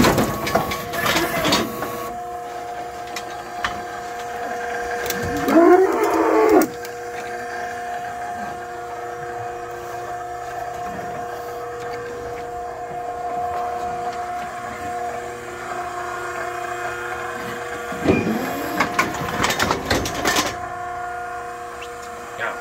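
A hydraulic machine hums steadily.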